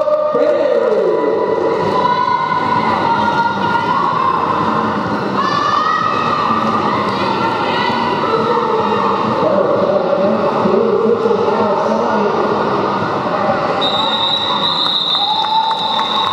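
Roller skate wheels rumble over a wooden floor.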